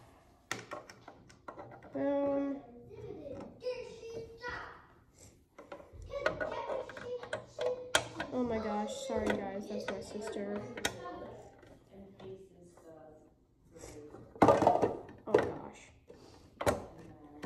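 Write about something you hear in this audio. A fingerboard clacks and rolls on a plastic ramp.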